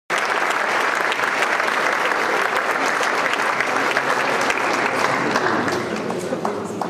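A large crowd applauds in a big hall.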